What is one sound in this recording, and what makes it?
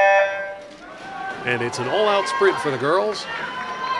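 Swimmers splash into the water and swim.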